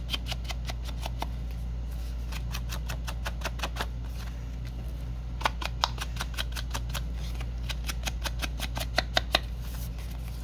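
An ink blending tool taps rapidly against paper.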